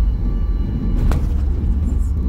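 An airliner's wheels touch down on a runway with a thump.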